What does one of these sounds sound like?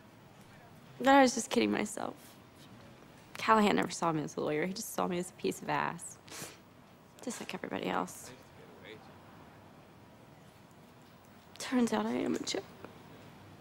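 A young woman speaks softly and warmly up close.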